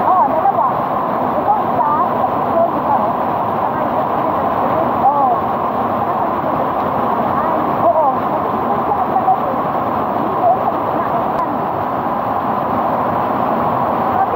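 A waterfall roars as water cascades over rocks.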